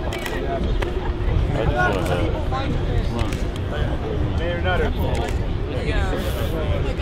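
A crowd of men and women talks and chatters close by, outdoors.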